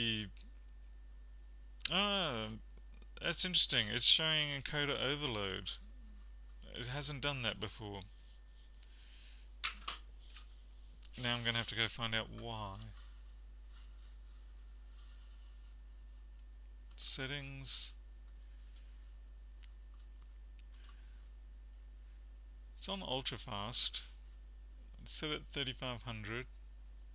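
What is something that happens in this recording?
A man talks calmly into a close microphone, in short bursts with pauses.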